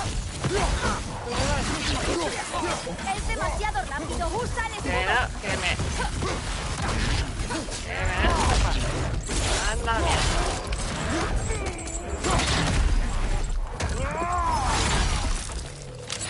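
A large beast snarls and roars.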